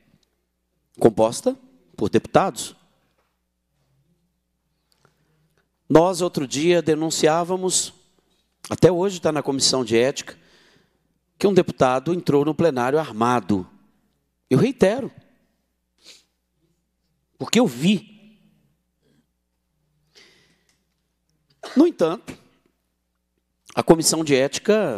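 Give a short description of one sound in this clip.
A middle-aged man speaks forcefully into a microphone, in short bursts with pauses.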